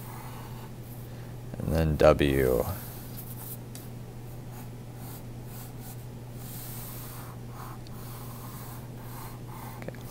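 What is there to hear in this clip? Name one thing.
A pencil scratches lightly across paper.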